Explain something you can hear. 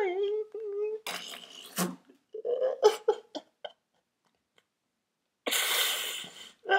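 A young man sniffles and gasps for breath.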